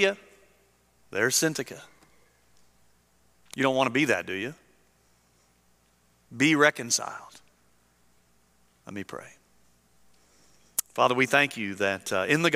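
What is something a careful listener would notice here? A middle-aged man speaks through a microphone in bursts, with pauses, in an echoing hall.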